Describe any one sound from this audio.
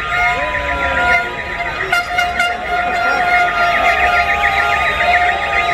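A large crowd of young men and women cheers and shouts loudly outdoors.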